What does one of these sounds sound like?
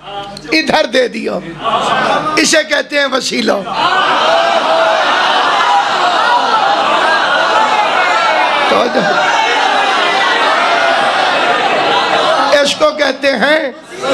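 A man speaks forcefully through a microphone, his voice rising with passion and echoing loudly.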